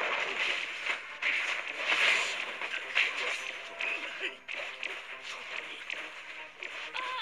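Game figures clash with slashing hits and magic bursts.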